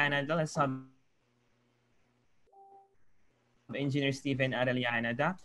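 A man speaks with animation through an online call.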